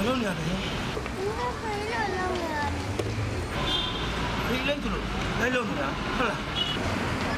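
A young girl sobs and whimpers.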